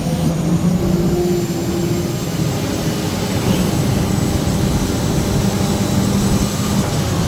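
A hydraulic crane arm whines as it swings a log.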